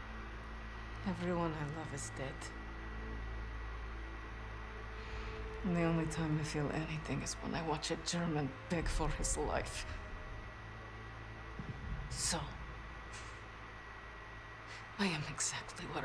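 A young woman speaks in a low, bitter voice.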